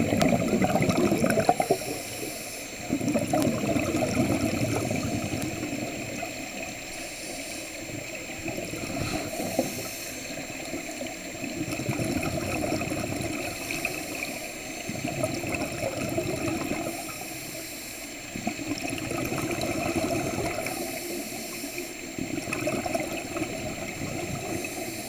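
A diver breathes slowly and loudly through a regulator underwater.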